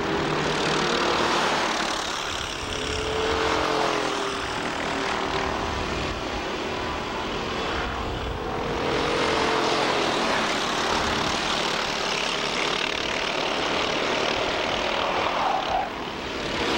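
Kart engines whine and buzz loudly as they race past.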